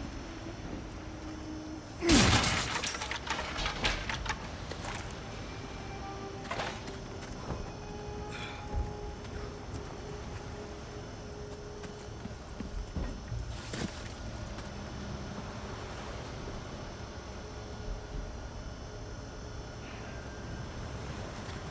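Footsteps crunch on gravel.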